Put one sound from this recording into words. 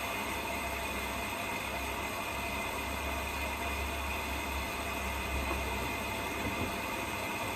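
A washing machine drum turns with a steady hum.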